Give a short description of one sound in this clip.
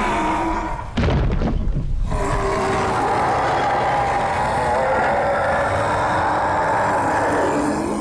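A huge beast growls and roars loudly.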